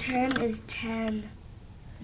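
A plastic toy is handled and knocked about.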